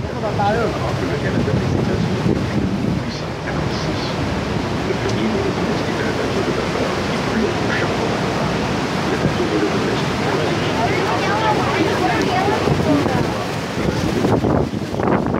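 A crowd of adults chatters and calls out excitedly close by.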